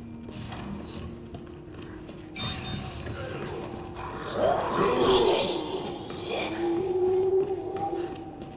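Footsteps tread steadily along a hard floor.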